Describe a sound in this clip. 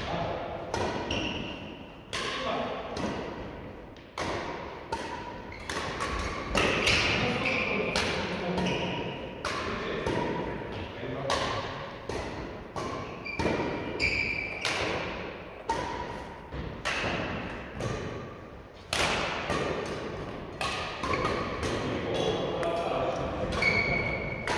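Badminton rackets smack shuttlecocks again and again in a large echoing hall.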